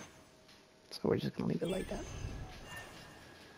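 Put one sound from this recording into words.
A whooshing game chime sounds as a menu closes.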